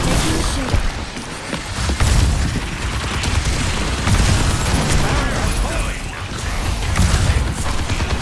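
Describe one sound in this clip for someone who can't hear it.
An energy gun fires in quick bursts.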